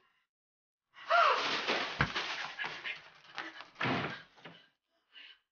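A middle-aged woman screams in fright.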